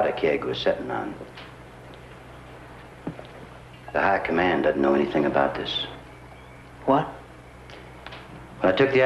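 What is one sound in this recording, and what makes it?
A middle-aged man speaks calmly up close.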